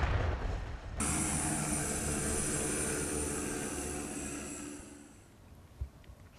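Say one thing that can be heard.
A drone's propellers buzz steadily overhead.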